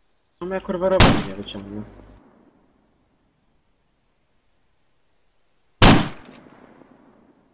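A rifle fires sharp, loud shots that echo away.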